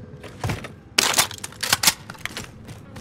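A gun's metal parts clack and rattle as it is handled.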